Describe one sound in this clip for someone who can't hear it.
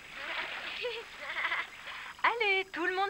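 Water splashes as a child swims.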